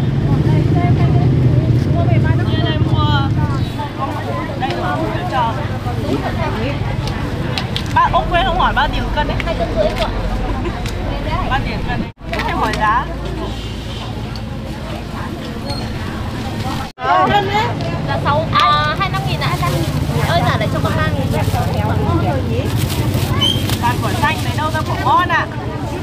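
Several women chat with animation close by.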